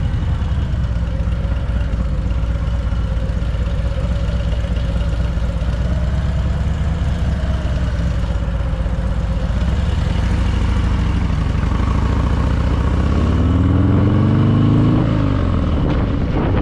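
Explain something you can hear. A motorcycle engine rumbles steadily at low speed.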